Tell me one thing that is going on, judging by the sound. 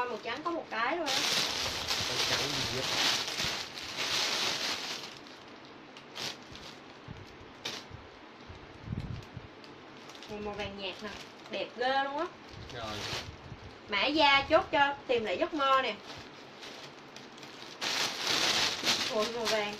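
Fabric rustles as a dress is handled.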